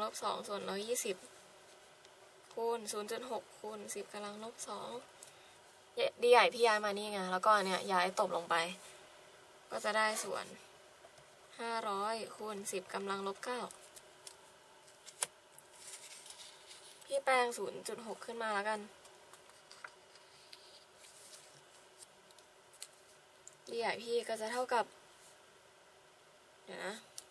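A marker pen squeaks softly across paper.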